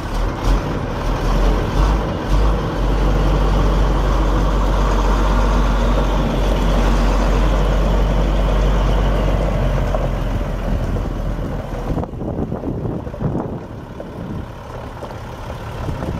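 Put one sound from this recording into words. A truck engine idles with a low, steady rumble.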